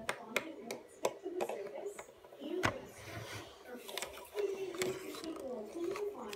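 Plastic toy pieces clack and knock on a table.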